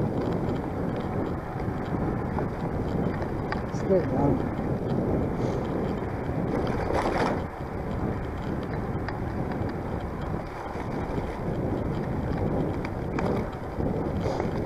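Bicycle tyres roll steadily over a paved path.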